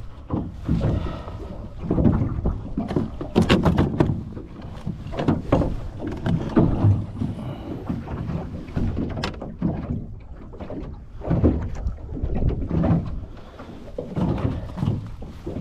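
A fish slaps about inside a plastic tub.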